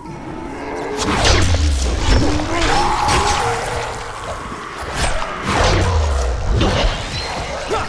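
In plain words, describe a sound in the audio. A blade slashes into flesh with heavy, wet thuds.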